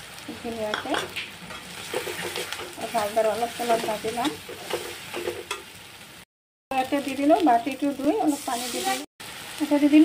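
A metal spatula scrapes and stirs food in a metal pan.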